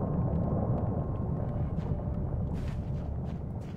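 Light footsteps patter on the ground.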